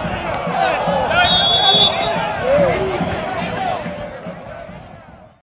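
A crowd of spectators cheers loudly outdoors and slowly quiets down.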